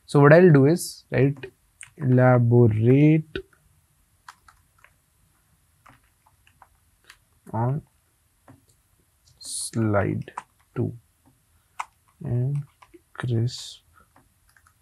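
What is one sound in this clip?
A young man speaks calmly into a close microphone, pausing often.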